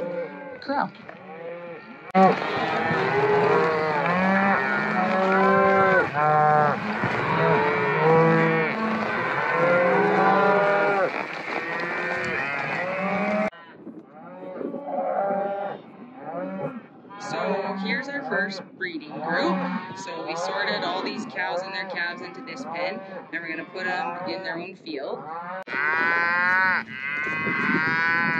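A herd of cattle moos and bawls outdoors.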